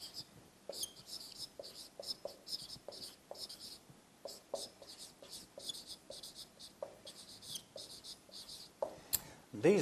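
A marker squeaks in short strokes on a whiteboard.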